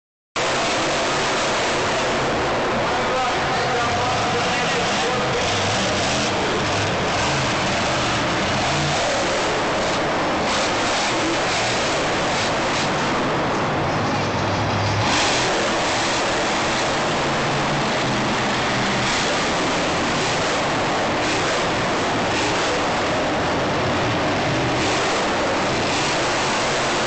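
A monster truck engine roars loudly in a large echoing arena.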